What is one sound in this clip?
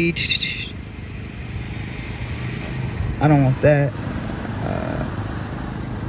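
A young man reads aloud forcefully through a microphone outdoors.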